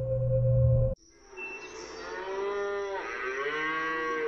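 Cows low from a herd outdoors.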